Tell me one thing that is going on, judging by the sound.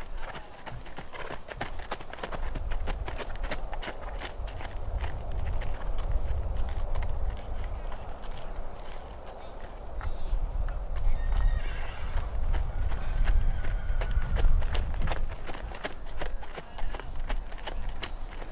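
Horse hooves clop on a gravel path.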